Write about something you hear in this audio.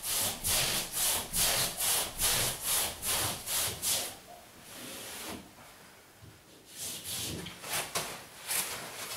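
Sandpaper rubs against a wall in rhythmic strokes.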